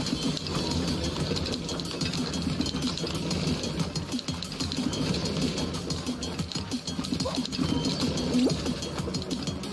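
Small cartoon figures patter and bump as they run.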